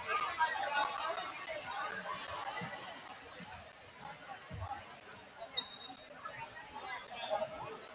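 Players and spectators chatter and call out, echoing in a large gym.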